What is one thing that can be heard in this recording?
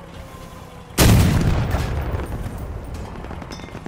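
A tank cannon fires with a loud boom that rumbles away.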